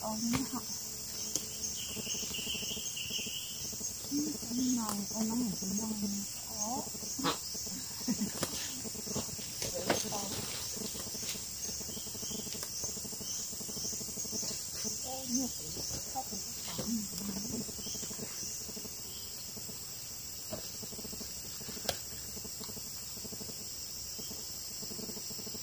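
Plant stems snap and leaves rustle as greens are picked by hand.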